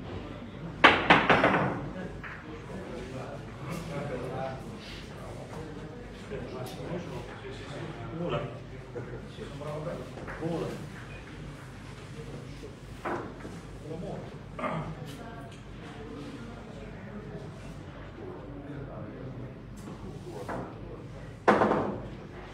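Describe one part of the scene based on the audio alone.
Billiard balls clack against each other and the cushions.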